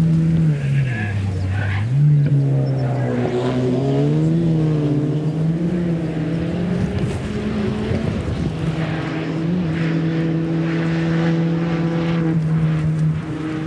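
A rally car engine revs hard, roaring and shifting gears as the car speeds past.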